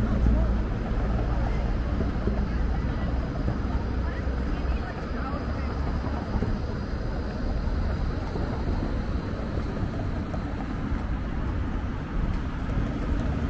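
Cars drive past on the street.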